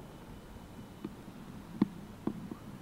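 Tennis balls thud as they drop into a plastic bucket.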